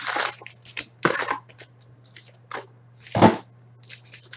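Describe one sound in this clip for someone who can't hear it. Foil card packs click and clatter as they are stacked.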